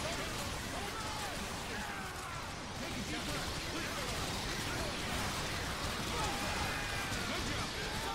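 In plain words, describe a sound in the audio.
Explosions rumble and boom without a break.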